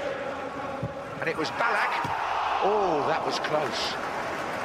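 A large stadium crowd roars as a free kick is taken.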